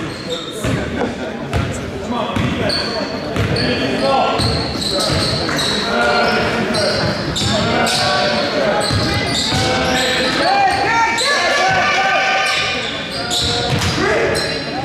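A basketball bounces on a hardwood floor in a large echoing gym.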